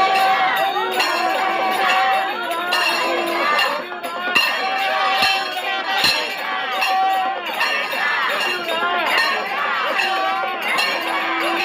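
A crowd chants loudly and continuously.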